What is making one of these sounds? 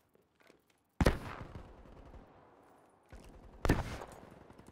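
A rifle fires loud shots that echo around a room.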